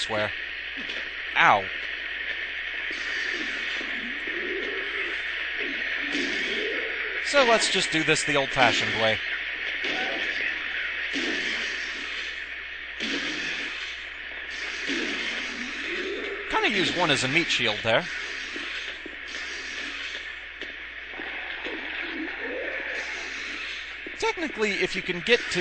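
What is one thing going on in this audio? Creatures moan and groan low and eerily.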